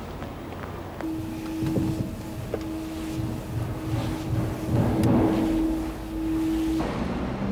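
A feather duster brushes and rustles against a painting.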